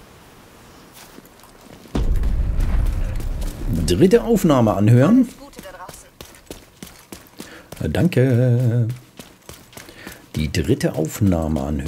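Footsteps run quickly over wet pavement.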